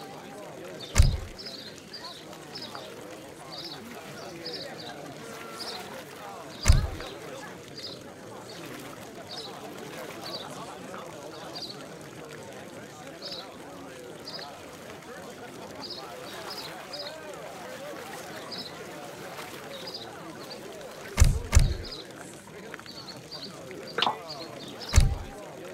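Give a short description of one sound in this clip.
Menu clicks thump now and then.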